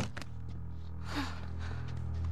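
A young girl gasps softly nearby.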